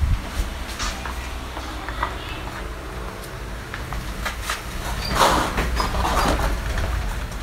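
Sandals slap and scuff on a tiled floor.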